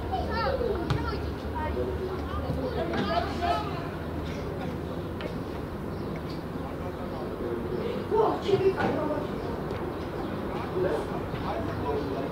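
Young players shout to each other across an open field.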